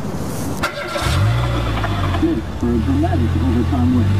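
A car engine starts and runs with a low, steady hum.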